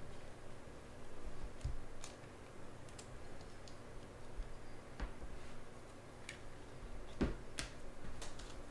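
A shiny card wrapper crinkles and crackles as hands tear it open.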